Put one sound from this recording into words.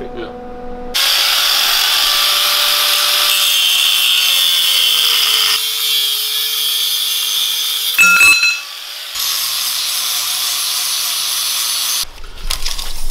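An angle grinder whines loudly as it cuts through a steel pipe.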